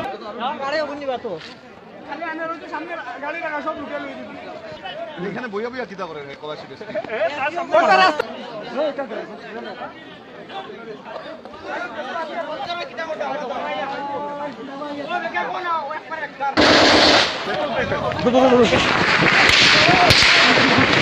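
Men talk and shout excitedly close by.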